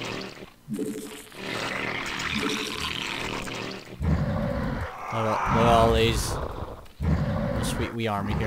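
Swarming creatures in a video game hiss and screech as they attack.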